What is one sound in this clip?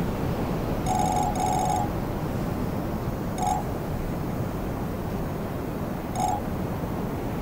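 Short electronic beeps chime now and then.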